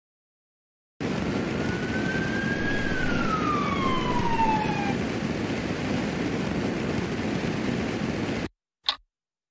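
A rocket engine roars steadily as a rocket lifts off.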